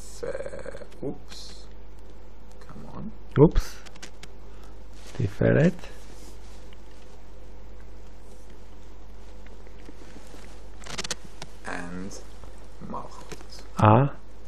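A man speaks into a microphone in short bursts, with pauses.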